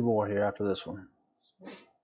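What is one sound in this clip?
A man speaks briefly and casually into a microphone.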